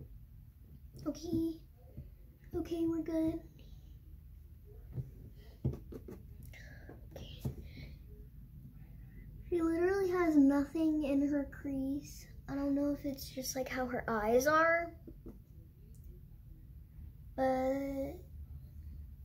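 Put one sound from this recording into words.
A young girl talks close by, in bursts and pauses.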